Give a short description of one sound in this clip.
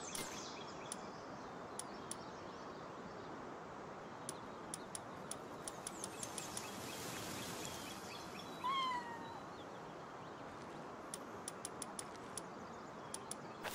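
Soft menu clicks tick as selections change.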